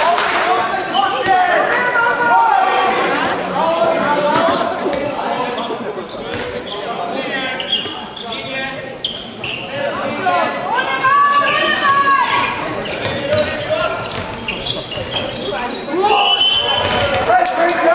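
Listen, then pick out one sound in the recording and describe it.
A ball thuds as it bounces on a hard floor.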